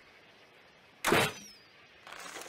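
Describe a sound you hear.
A crossbow fires with a sharp twang.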